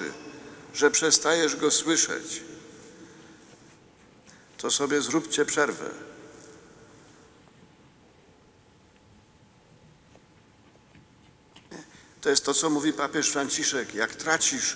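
An elderly man speaks slowly and solemnly through a microphone in a large echoing hall, with long pauses.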